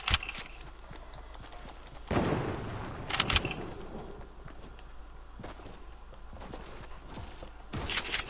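Footsteps run quickly over the ground.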